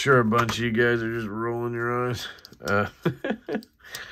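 A folding knife blade snaps open with a click.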